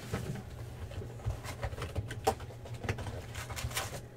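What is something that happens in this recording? Cardboard flaps are torn open.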